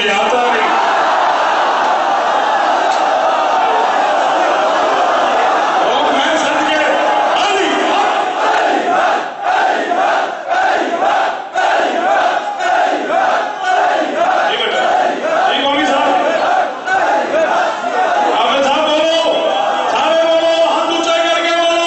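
A man chants loudly and passionately through a microphone in an echoing hall.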